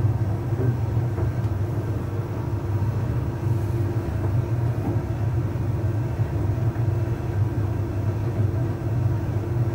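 A tumble dryer drum turns with a steady low hum.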